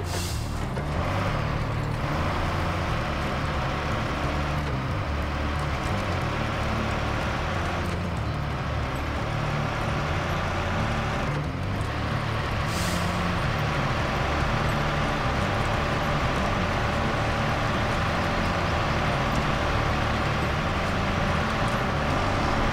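Tyres churn and squelch through thick mud.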